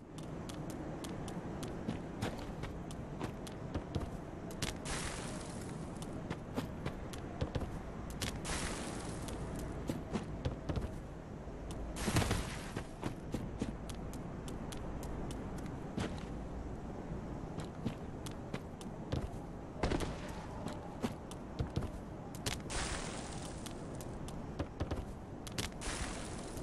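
Footsteps patter quickly over stone and grass.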